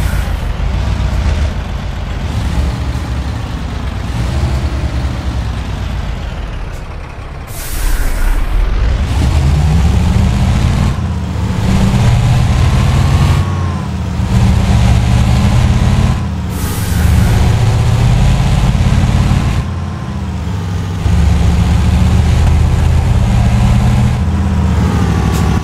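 A heavy truck engine rumbles loudly, its pitch rising and dropping again and again as it speeds up and changes gear.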